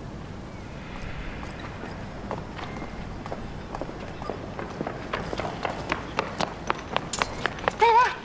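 Footsteps tap on pavement outdoors.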